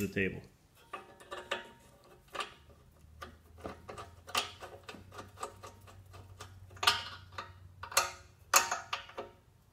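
Metal washers clink against a steel part.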